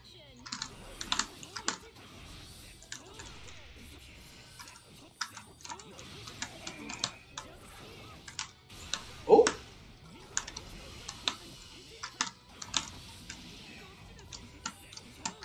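Sharp hits and impact effects from a fighting game crack repeatedly.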